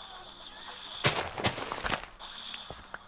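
Dirt crunches in short bursts as blocks are dug out.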